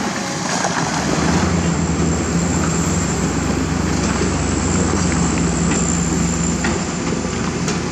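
A loaded diesel dump truck climbs a dirt slope under load.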